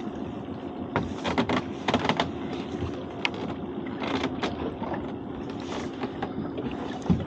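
Water splashes and drips as a trap is hauled up beside a boat.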